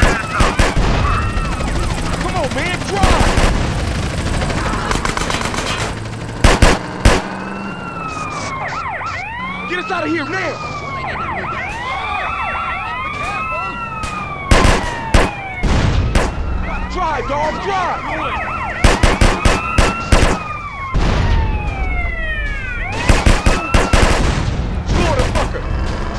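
Large explosions boom and roar.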